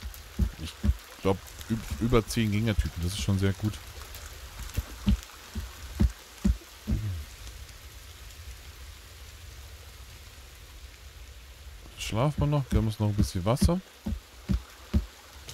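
Keys on a keyboard click and tap.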